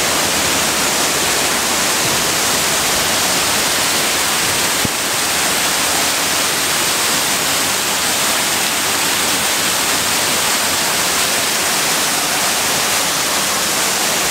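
A fountain's water jets splash and roar steadily nearby.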